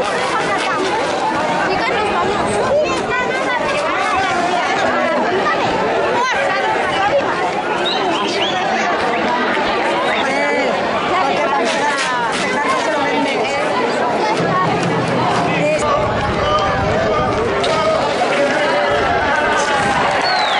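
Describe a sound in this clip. A crowd of people shouts and cheers loudly outdoors.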